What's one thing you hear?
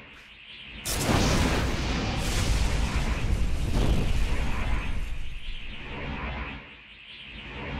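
A roulette wheel spins with a rushing whoosh.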